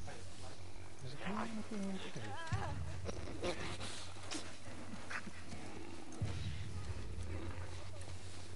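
Tall grass rustles as someone creeps slowly through it.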